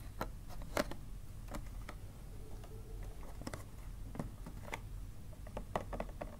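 A plastic box taps on a hard surface.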